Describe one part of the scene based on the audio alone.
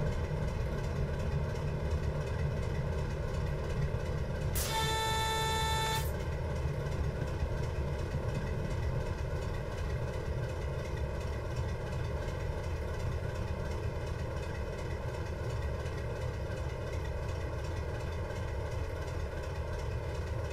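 A diesel locomotive engine drones steadily.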